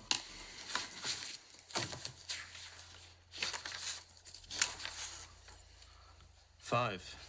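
Paper rustles as pages are leafed through close by.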